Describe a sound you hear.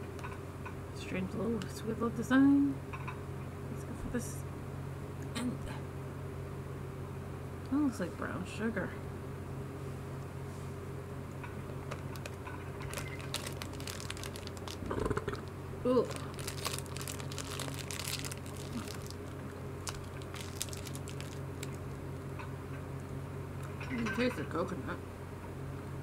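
A young woman speaks casually close by.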